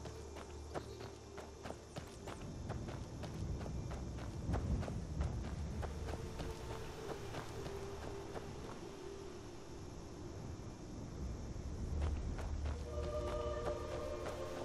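Footsteps crunch along a dirt path.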